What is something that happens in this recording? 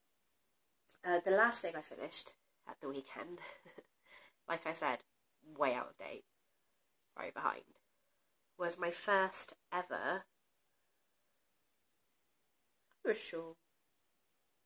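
A young woman talks calmly and close to a microphone, in short bursts with pauses.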